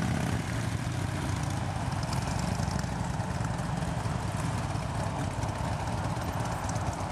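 A motorcycle engine revs as it rides past.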